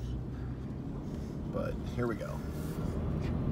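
A teenage boy talks inside a car.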